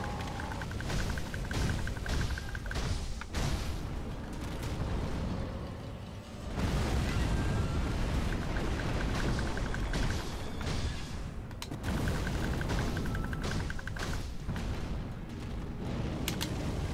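Blades clash and slash in quick, sharp strikes.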